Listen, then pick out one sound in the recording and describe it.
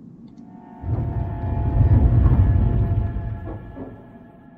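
A heavy metal hatch rumbles and grinds open.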